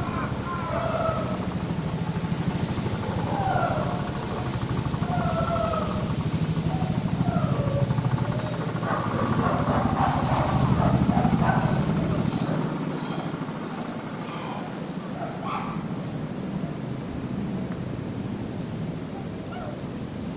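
Chimpanzees' footsteps rustle softly on dry leaves and straw.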